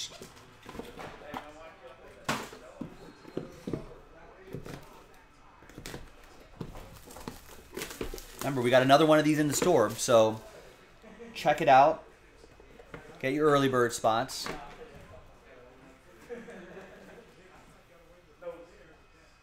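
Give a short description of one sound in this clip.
Cardboard boxes scrape and rustle as they are opened.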